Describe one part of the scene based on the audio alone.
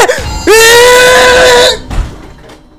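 A man shouts loudly and excitedly into a microphone.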